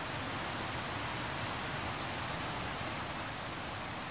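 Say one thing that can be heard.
A waterfall rushes nearby.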